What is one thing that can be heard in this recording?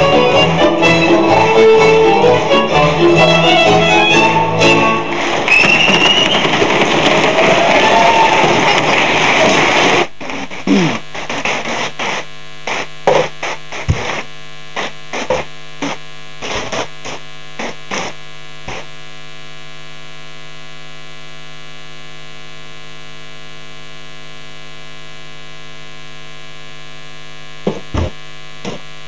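Dancers' boots stomp on a stage in quick rhythmic beats.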